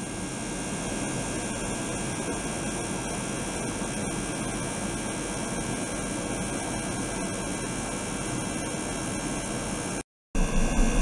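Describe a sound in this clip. A small pump hums steadily.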